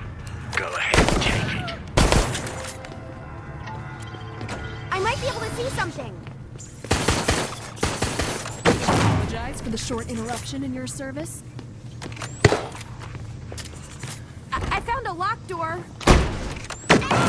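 Gunshots fire sharply now and then.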